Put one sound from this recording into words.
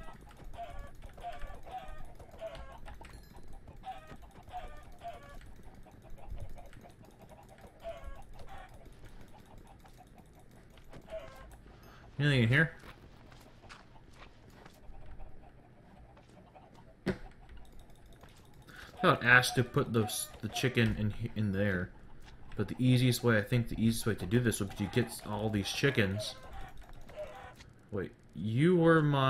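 Chickens cluck softly.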